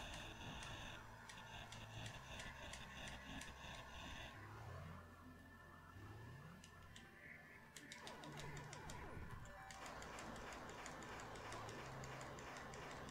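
Retro video game music plays with beeping effects.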